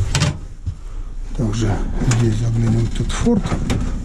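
An oven door creaks and clunks as it is pulled open.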